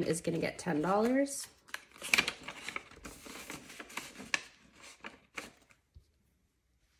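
Paper banknotes rustle and crinkle as they are handled.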